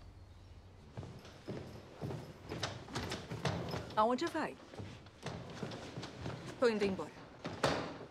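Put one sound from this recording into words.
A woman speaks.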